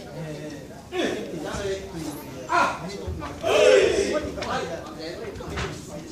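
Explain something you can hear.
Karate students shout together in unison.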